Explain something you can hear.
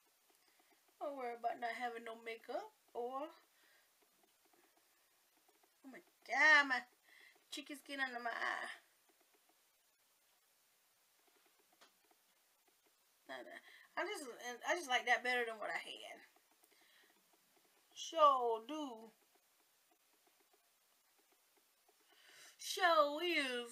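A woman talks calmly and closely into a microphone, in bursts with pauses.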